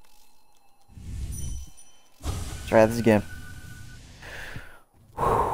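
A loud shimmering burst whooshes and rumbles.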